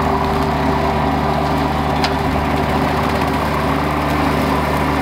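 A rotary mower whirs loudly as it cuts tall grass.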